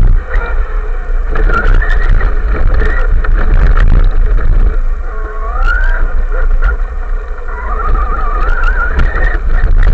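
The brushless electric motor of a radio-controlled car whines, rising and falling in pitch.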